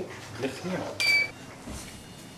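A microchip scanner beeps once.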